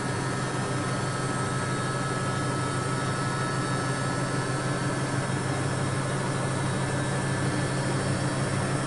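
A washing machine hums steadily as its drum spins.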